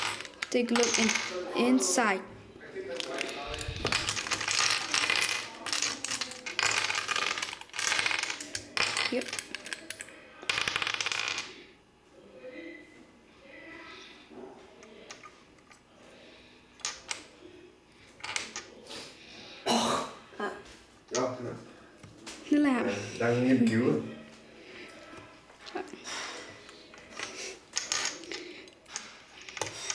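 Plastic puzzle pieces click together as they are fitted by hand.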